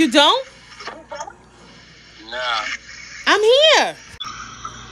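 A young woman speaks close by in an animated, sing-song voice.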